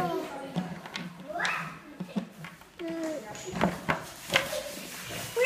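Plastic toy animals clatter as children sort them.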